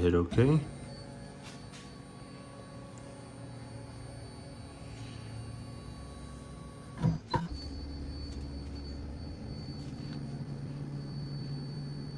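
Stepper motors on a machine hum steadily.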